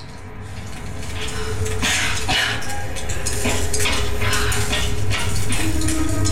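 Footsteps clang on metal grating and stairs.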